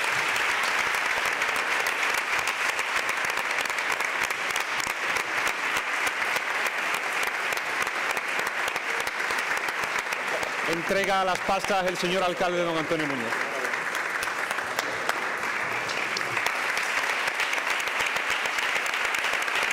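A large crowd applauds steadily in a large echoing hall.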